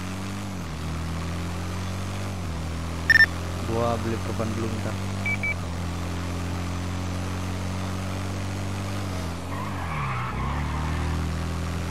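A motorcycle engine hums steadily, dipping and rising as the rider shifts gears.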